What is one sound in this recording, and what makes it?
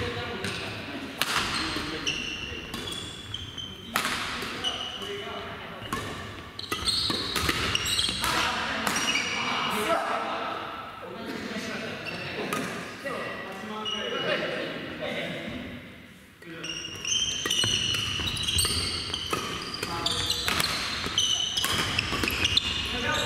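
Shoes squeak on a hard floor.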